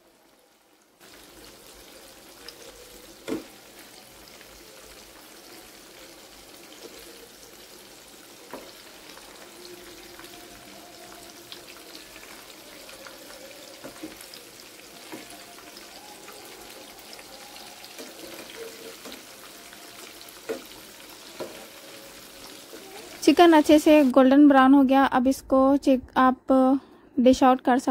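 Hot oil sizzles and bubbles steadily in a pan.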